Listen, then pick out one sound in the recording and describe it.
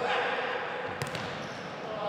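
A ball is kicked hard with a sharp thud in an echoing hall.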